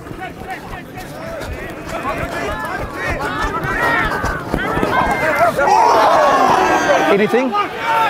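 A crowd of spectators cheers loudly, building to a roar.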